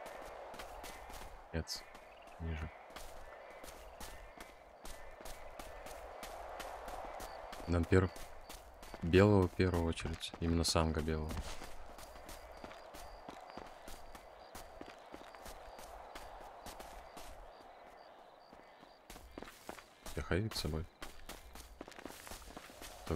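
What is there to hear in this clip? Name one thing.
Footsteps patter quickly over grass and dirt.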